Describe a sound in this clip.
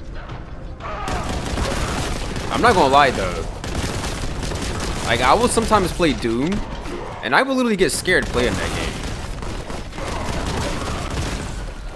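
A rapid-firing gun fires bursts of shots.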